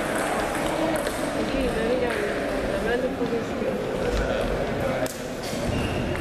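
Table tennis balls click sharply off paddles and tables in a large echoing hall.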